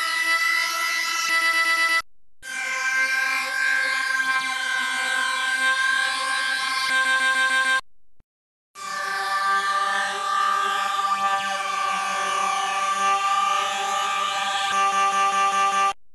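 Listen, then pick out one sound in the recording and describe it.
An electronic organ plays sustained, wavering chords with short pauses between them.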